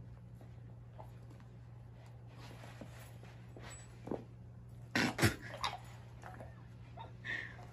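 A dog and a kitten scuffle on a rug, with paws scratching softly.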